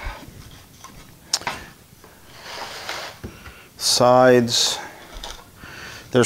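Thin wooden boards knock and rattle as they are lifted from a cardboard box.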